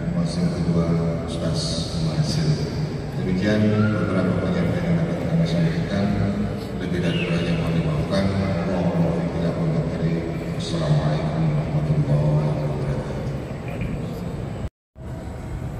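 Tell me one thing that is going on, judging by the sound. A middle-aged man speaks calmly into a microphone, heard through a loudspeaker in an echoing hall.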